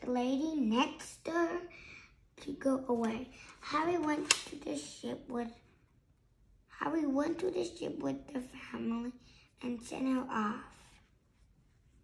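A young boy reads aloud slowly, close by.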